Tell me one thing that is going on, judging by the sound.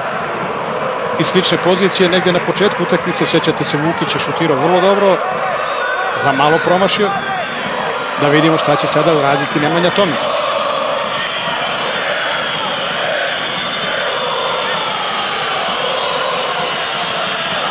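A large crowd murmurs and chants in an open stadium.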